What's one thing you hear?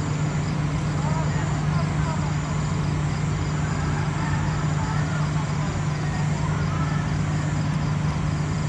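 Men talk faintly in the distance outdoors.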